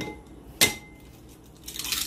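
An egg cracks sharply against the rim of a bowl.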